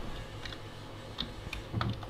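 Fingers tap on a computer keyboard.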